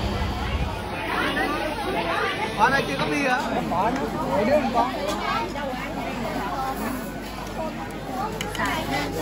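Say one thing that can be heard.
Adults talk and laugh close by.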